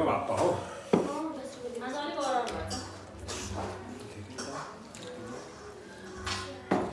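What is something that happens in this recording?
Two men eat rice by hand.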